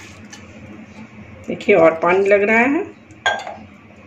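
Water pours into a bowl of flour.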